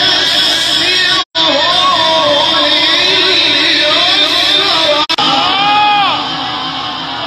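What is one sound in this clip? A man chants in a long, wavering melody through a loudspeaker microphone.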